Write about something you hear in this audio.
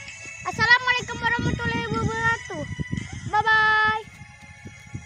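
A young boy speaks close by.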